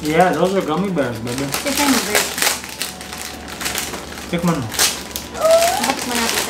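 A plastic snack wrapper crinkles.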